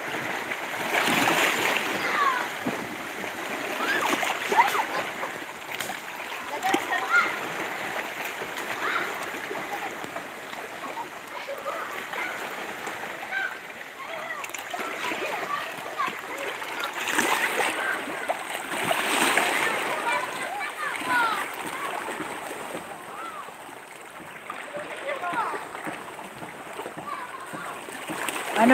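Small waves lap and splash against rocks close by.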